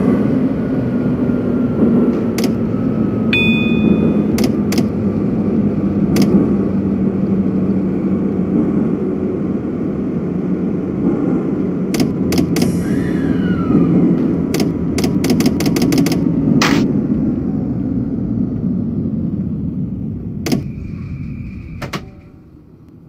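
A train rumbles steadily along the tracks and slowly winds down.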